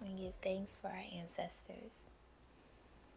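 A young woman speaks calmly and softly close by.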